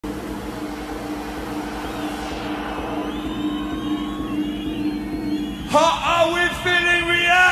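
A crowd cheers in a large hall.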